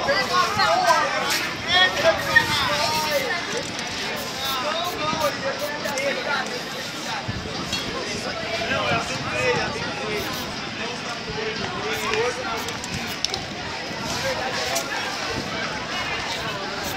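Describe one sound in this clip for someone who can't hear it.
A spray can hisses in short bursts.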